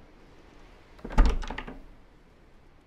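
A door handle rattles against a lock.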